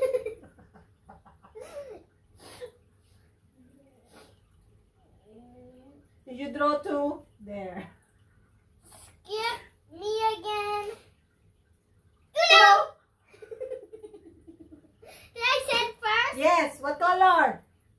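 A young girl giggles close by.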